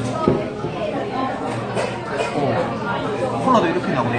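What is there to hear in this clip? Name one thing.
A glass bottle clinks on a wooden table.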